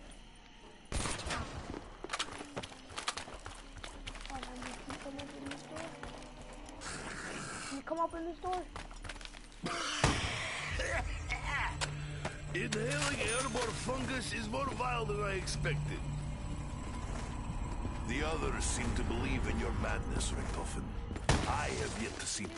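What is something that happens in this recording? Guns fire in short bursts, with sharp cracks.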